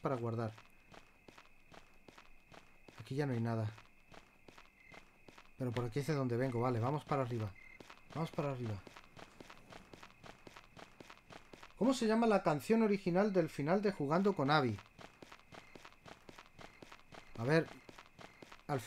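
A middle-aged man talks calmly into a close microphone, in short bursts.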